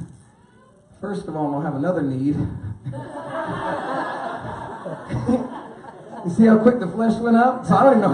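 A man preaches with animation through a microphone in a large echoing hall.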